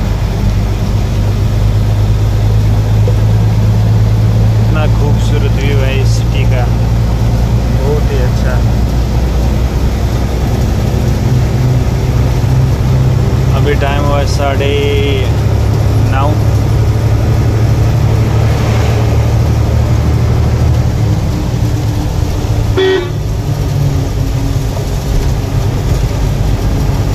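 A vehicle's engine hums steadily while driving along a road.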